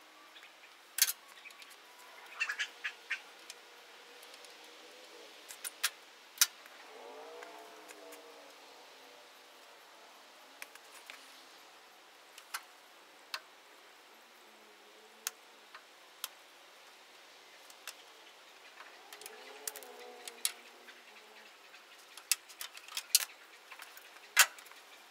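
Metal tools clink and clank sharply against car parts.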